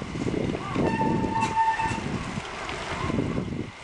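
A bicycle rolls away over pavement, its tyres whirring faintly.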